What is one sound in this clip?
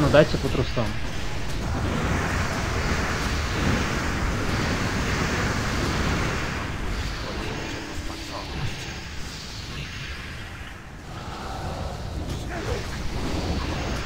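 Spell effects whoosh and crackle in a battle.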